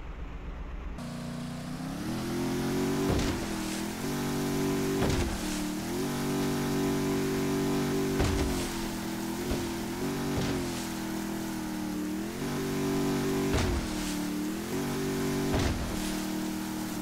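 A motorboat engine drones loudly and revs up and down.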